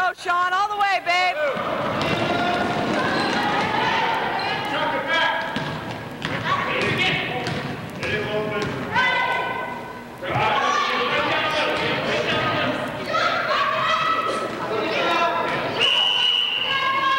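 Spectators shout and cheer loudly in a large echoing gym.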